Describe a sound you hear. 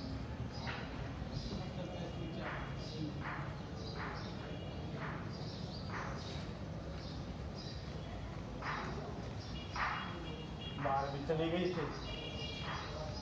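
A broom sweeps a stone floor in short, regular strokes.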